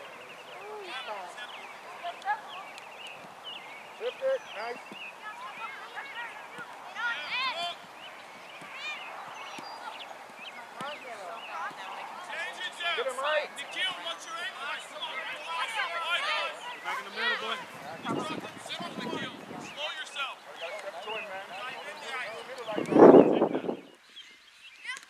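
Young boys shout and call to each other across an open field.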